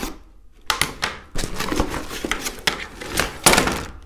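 Plastic parts clatter onto a table.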